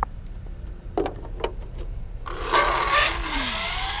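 A skateboard clacks and slaps onto the pavement.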